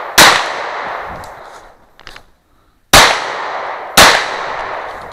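Pistol shots ring out loudly outdoors, echoing briefly.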